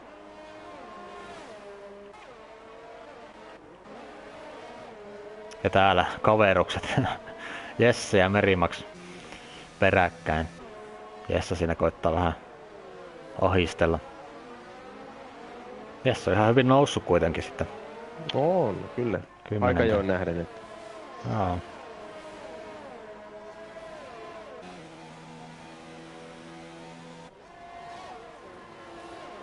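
Racing car engines whine at high revs, rising and falling in pitch as gears shift.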